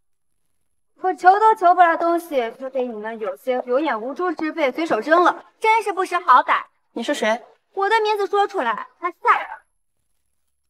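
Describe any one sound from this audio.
A young woman speaks coldly and clearly, close by.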